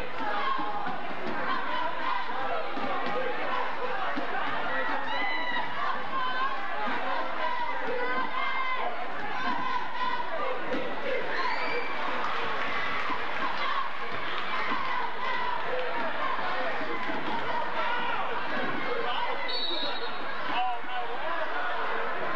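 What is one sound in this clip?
A large crowd chatters and cheers in a big echoing gym.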